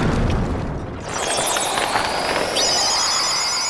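A magical blast bursts with a bright whoosh.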